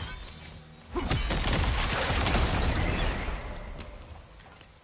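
A spear flashes with a loud crackling burst.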